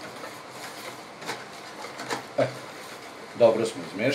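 A hand stirs and splashes liquid.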